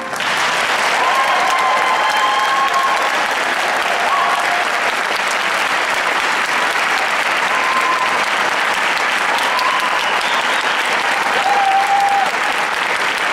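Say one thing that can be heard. Audience members whistle shrilly.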